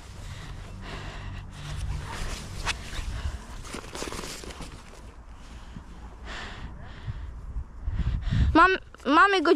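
Fabric and a bag rustle as hands handle gear close by.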